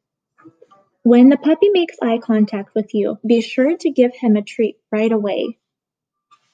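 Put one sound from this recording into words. A woman speaks softly and warmly close by.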